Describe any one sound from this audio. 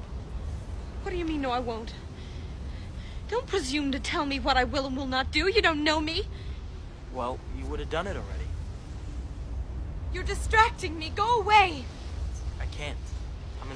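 A young woman speaks sharply and with anger, close by.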